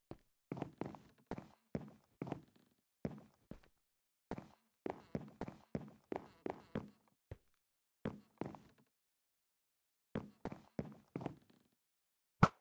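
Wooden blocks are set down with quick, soft knocks.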